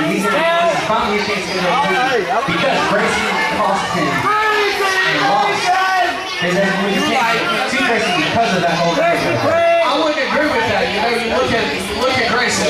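A crowd of men and women talks and shouts throughout an echoing hall.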